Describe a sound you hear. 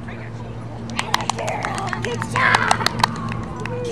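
A woman claps her hands to praise a dog.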